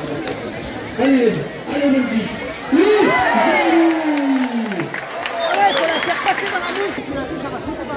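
Young men nearby shout and whoop loudly.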